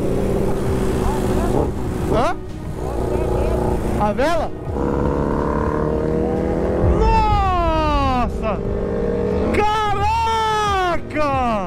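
Motorcycle engines roar and rev up and down close by.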